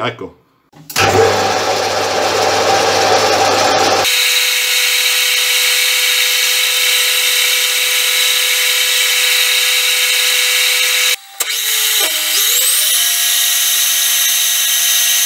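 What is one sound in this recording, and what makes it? A lathe spins with a steady high whine.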